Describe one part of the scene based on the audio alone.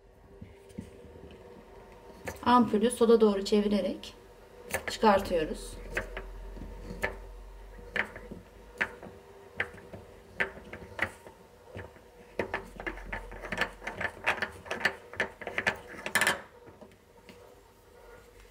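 A glass bulb squeaks and clicks as fingers turn it in its socket.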